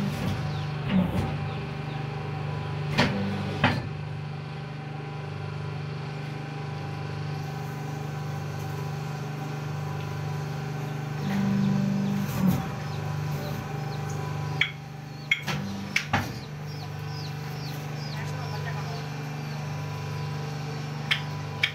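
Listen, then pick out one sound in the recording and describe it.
Metal parts clack and knock sharply now and then.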